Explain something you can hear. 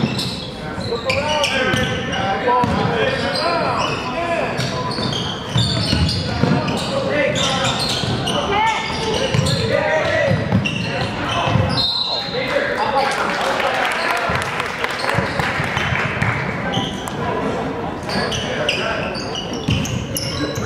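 Spectators talk and cheer in an echoing gym.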